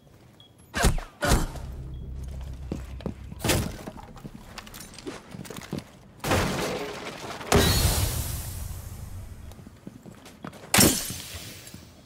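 Gunshots bang sharply and close by.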